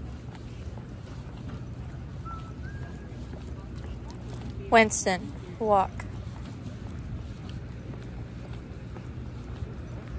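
Footsteps of a person and a dog walk on a concrete path.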